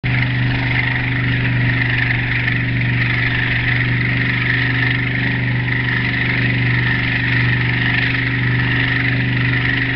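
A motorboat engine drones steadily up close.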